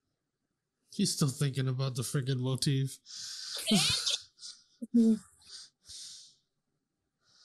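A young man speaks with animation, close up.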